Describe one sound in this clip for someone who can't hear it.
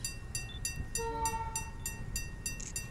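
A train horn sounds from a distance.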